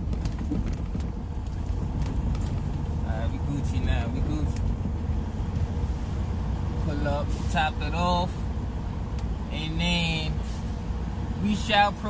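A car engine rumbles steadily while driving slowly.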